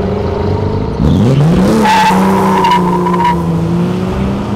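Tyres squeal on the road.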